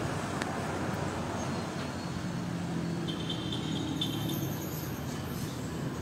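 Cars drive past on a street outdoors.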